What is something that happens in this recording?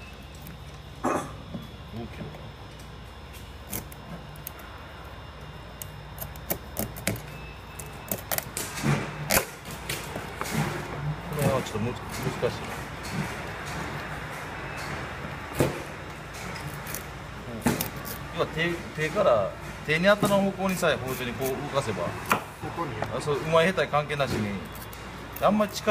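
A knife taps and knocks against a plastic cutting board.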